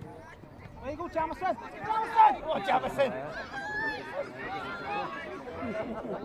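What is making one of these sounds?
Spectators shout and cheer from the sideline.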